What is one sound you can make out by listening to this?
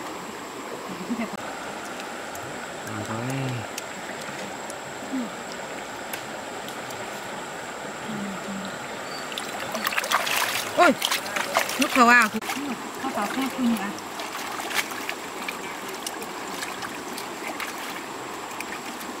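A shallow river flows and ripples over stones.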